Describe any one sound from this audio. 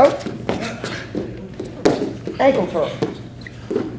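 A body thuds onto a wrestling mat.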